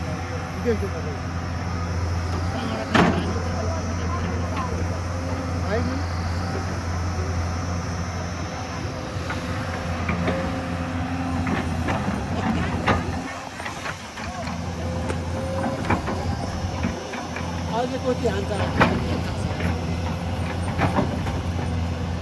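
Soil and stones scrape and thud under an excavator bucket.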